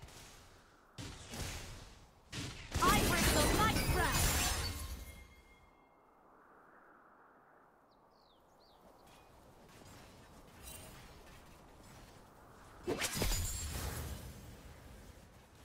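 Game spell effects burst and crackle in a fight.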